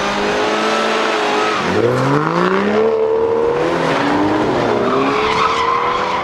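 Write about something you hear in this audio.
Tyres squeal and screech on the tarmac.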